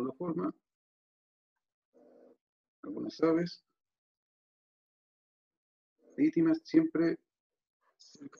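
A man talks calmly into a close microphone, in short phrases with pauses.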